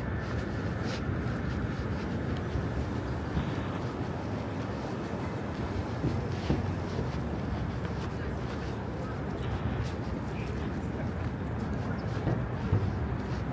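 Footsteps tap on the pavement.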